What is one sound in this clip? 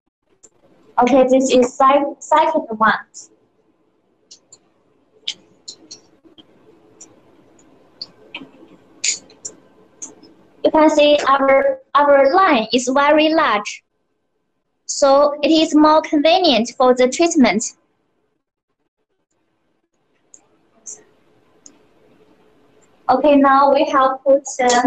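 A young woman speaks clearly and briskly, close by, in short bursts.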